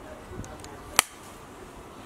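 A clapperboard snaps shut with a single sharp clack.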